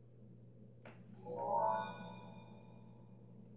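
A bright electronic chime rings out and fades.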